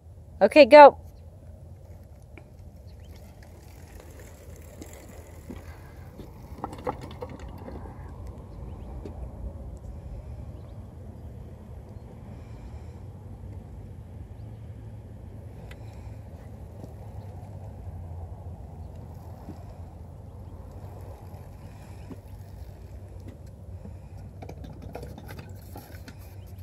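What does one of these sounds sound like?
Bicycle wheels rattle over wooden slats.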